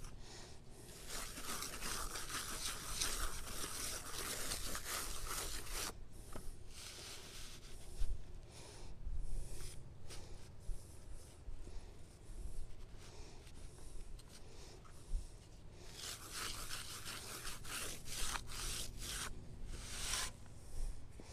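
A trowel scrapes and smooths wet cement against a block.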